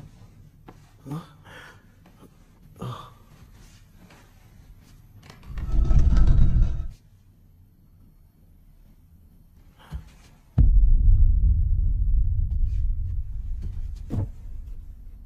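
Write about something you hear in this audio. Slow footsteps tread on a wooden floor.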